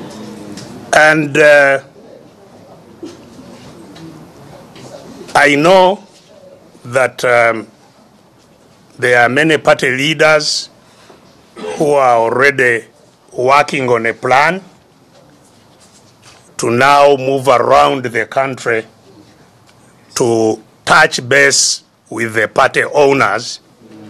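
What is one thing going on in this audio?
An elderly man speaks with animation, heard through a microphone.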